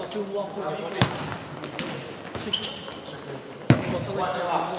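A futsal ball is kicked in an echoing indoor hall.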